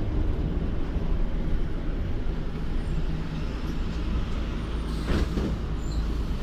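Loose fittings rattle inside the moving bus.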